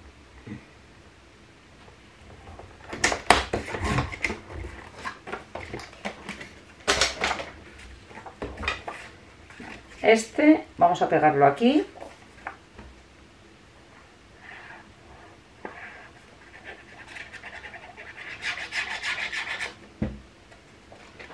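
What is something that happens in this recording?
Sheets of card rustle and tap as they are handled.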